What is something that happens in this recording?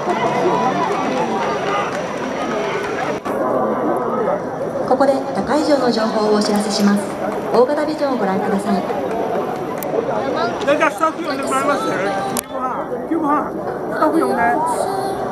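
A large crowd chants and sings loudly outdoors.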